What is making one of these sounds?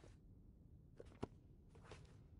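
A notebook snaps shut with a soft thud.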